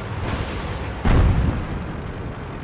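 A shell explodes with a loud boom nearby.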